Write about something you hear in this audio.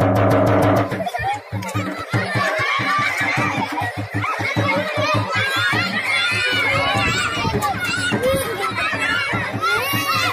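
Children shout and cheer excitedly.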